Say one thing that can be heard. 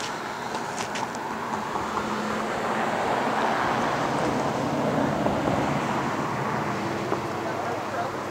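Waves wash onto a shore far below.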